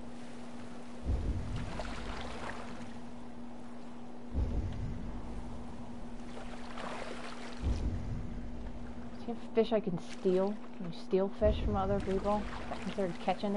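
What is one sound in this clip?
Oars splash through water in slow, regular strokes.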